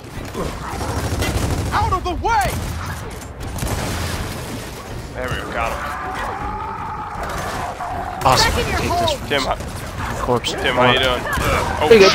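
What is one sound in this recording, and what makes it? Gunfire rattles in bursts, with loud shots and impacts.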